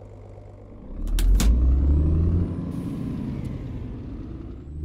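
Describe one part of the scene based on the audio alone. A diesel truck engine revs as the truck pulls away.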